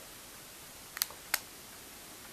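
A phone button clicks.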